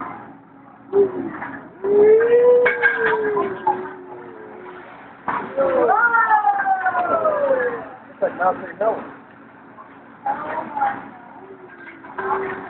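A young woman nearby exclaims and cries out in delight.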